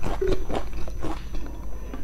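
A young woman gulps a drink.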